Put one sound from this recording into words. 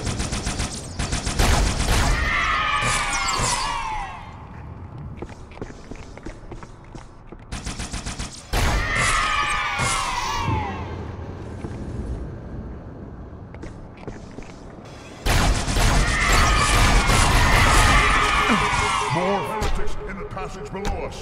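Energy weapons fire in rapid bursts with sizzling blasts.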